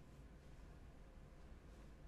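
A young man speaks quietly close to a microphone.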